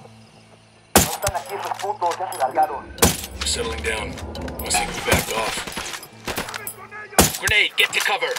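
A suppressed rifle fires single shots.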